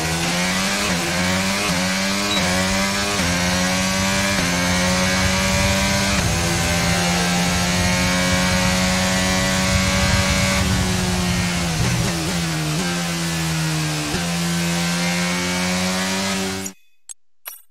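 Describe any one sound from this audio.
A racing car engine screams loudly, shifting up through the gears and dropping as it slows.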